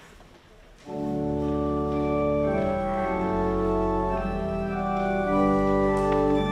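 An organ plays along with the choir.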